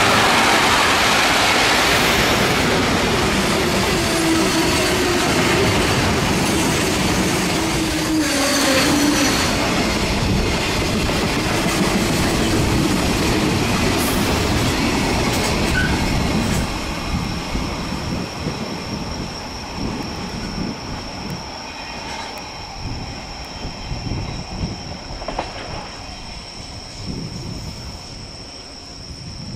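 A freight train rumbles past close by, wheels clattering over the rails, then slowly fades into the distance.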